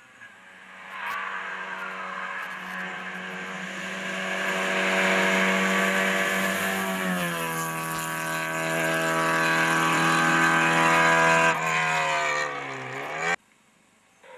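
A rally car engine roars loudly and revs as the car speeds past.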